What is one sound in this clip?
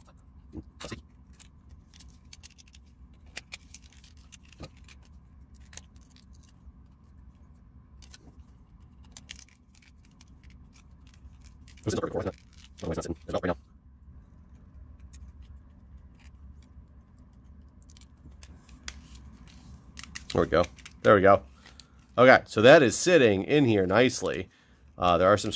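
Small plastic parts click and tap as they are handled close by.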